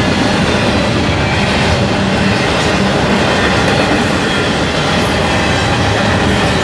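A long freight train rumbles and clatters past on the rails close by.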